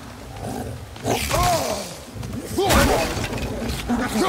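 Heavy blows strike and wood splinters.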